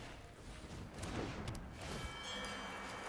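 A magical shimmering whoosh sounds as a card is played.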